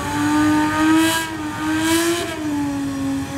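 Tyres squeal briefly on wet tarmac.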